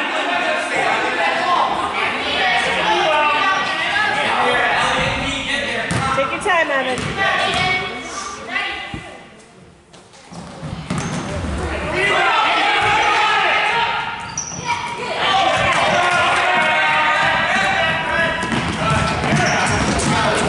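Adult spectators nearby shout and cheer loudly, echoing in a large hall.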